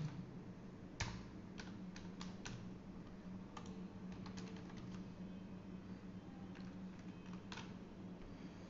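Keyboard keys click as someone types.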